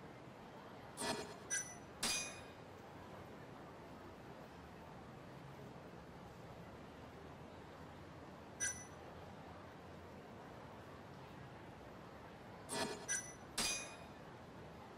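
Short, bright menu chimes click as pages turn.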